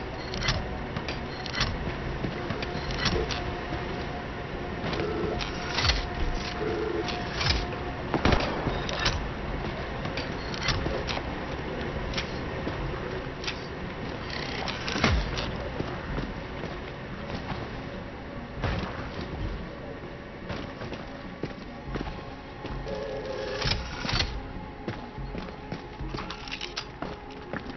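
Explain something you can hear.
Game building pieces click and thud into place.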